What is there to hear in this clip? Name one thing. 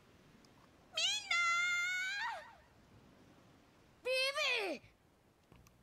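A young woman calls out loudly from a distance.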